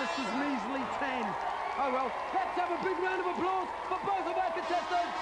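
A man shouts with excitement into a microphone.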